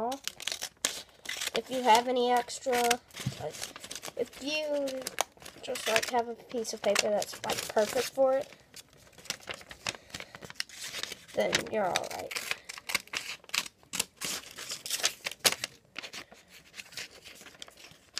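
Paper rustles and crinkles.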